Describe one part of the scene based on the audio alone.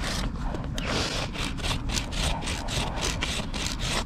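A knife pares a hoof with scraping strokes.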